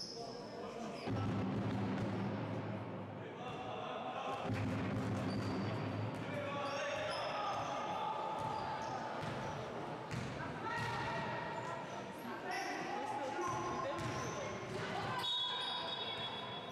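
Young girls call out to one another across the hall.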